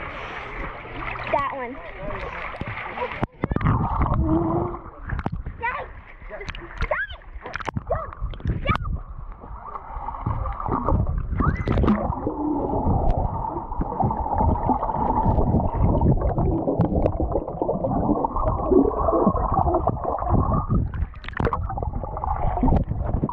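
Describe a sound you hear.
Water sloshes and splashes close by.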